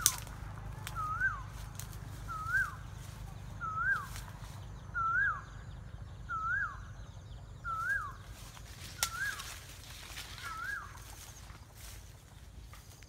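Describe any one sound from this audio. Wind blows outdoors and rustles leaves.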